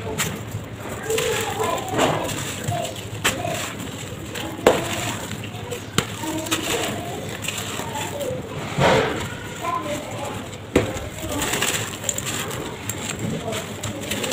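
Clumps of earth crumble and crunch between fingers.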